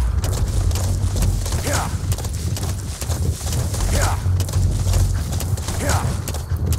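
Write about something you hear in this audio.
A horse's hooves thud in a steady gallop over grass.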